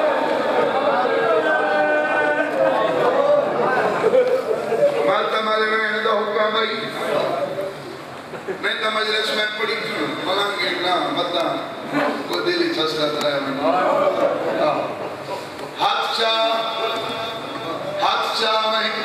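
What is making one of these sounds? A man chants with feeling through a microphone and loudspeakers in an echoing hall.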